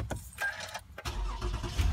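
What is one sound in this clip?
A car engine cranks and starts up.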